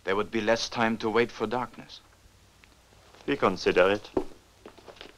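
A young man speaks firmly, close by.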